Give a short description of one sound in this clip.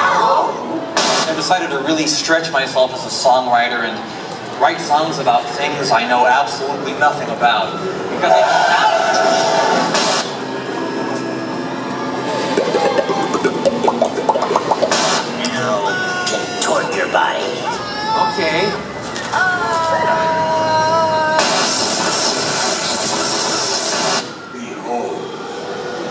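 A man speaks with animation through loudspeakers in a large echoing hall.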